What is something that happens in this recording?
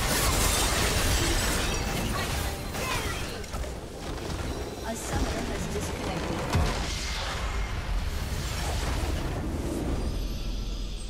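Spell effects crackle and clash in a busy fight.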